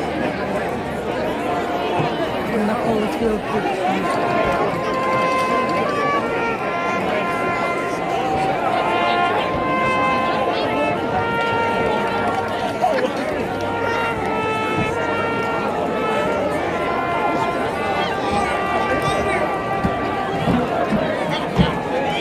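A crowd murmurs nearby.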